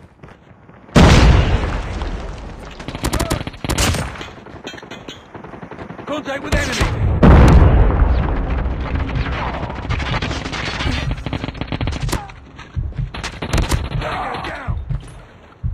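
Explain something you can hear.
Gunfire from a game rifle rattles in rapid bursts.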